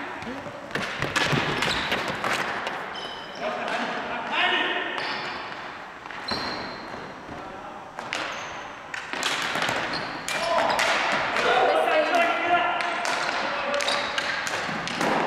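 Men shout and call out across a large echoing gym.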